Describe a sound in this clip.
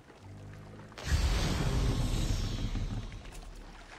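Water splashes and laps nearby.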